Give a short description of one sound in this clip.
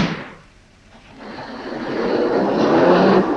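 A car engine starts up and rumbles louder and louder.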